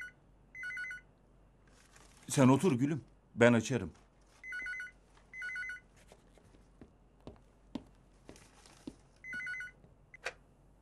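A telephone rings repeatedly.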